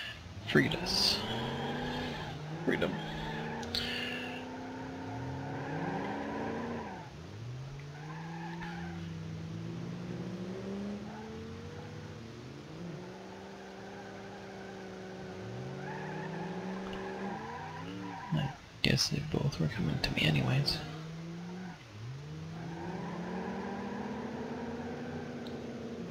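A car engine revs up and shifts through the gears.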